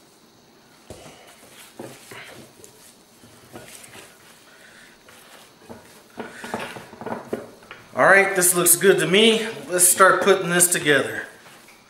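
Hands squish and knead soft ground meat in a bowl.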